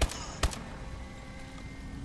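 A gun fires sharp shots.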